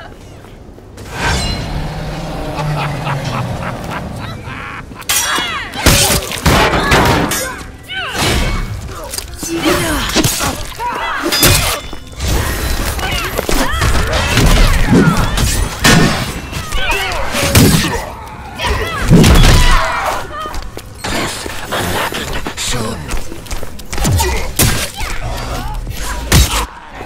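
Weapons clash and slash in a fierce fight.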